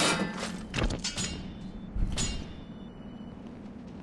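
A body in armour falls heavily to the ground.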